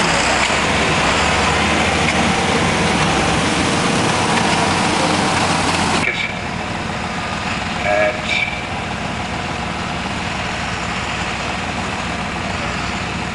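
A tractor engine roars heavily close by.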